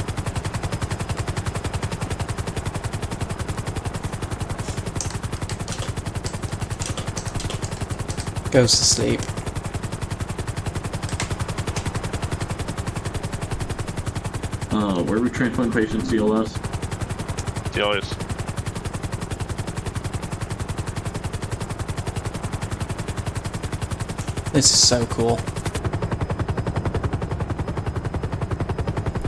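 A helicopter's rotor thumps steadily and fast overhead.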